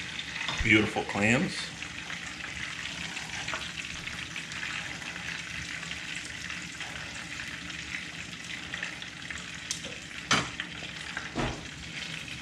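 Metal tongs click against a pan and food.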